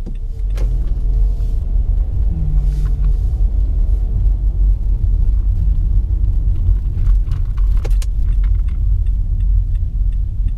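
Tyres roll on asphalt with a low rumble.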